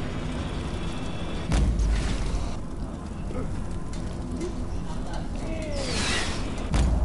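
Lively game music plays throughout.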